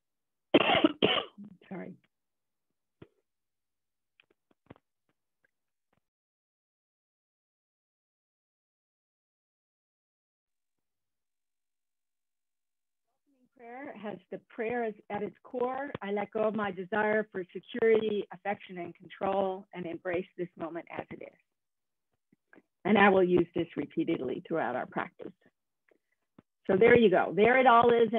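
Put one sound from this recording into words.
A middle-aged woman speaks calmly over an online call, with long pauses.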